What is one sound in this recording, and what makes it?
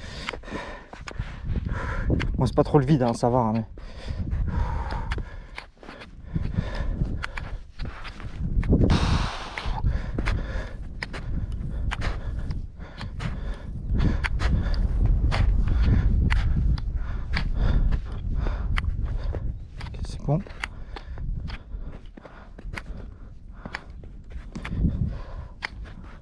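Boots crunch steadily on snow.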